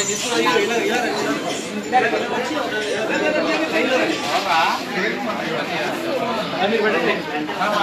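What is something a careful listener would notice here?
A crowd of young people chatter and call out nearby.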